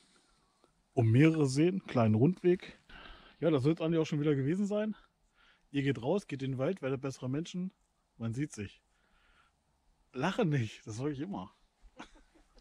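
A middle-aged man talks calmly and close to the microphone.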